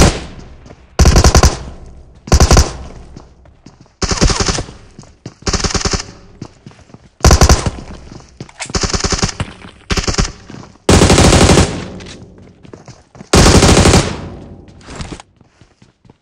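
Rapid bursts of gunfire ring out, loud and close, again and again.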